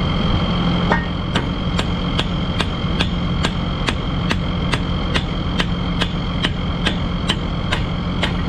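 A ratchet wrench clicks in a steady rhythm.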